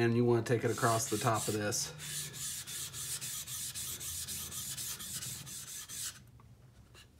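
A steel blade scrapes back and forth on a sharpening stone in quick, even strokes.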